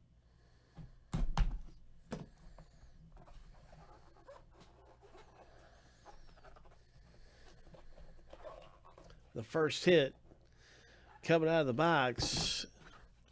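Cardboard rubs and taps as a box is handled and opened.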